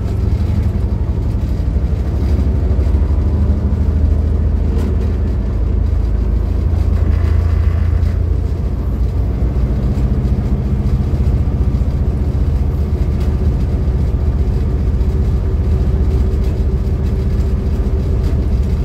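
A train rumbles steadily along the track with a deep drone.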